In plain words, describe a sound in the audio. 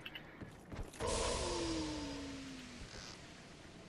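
A magical burst whooshes and shimmers, then fades.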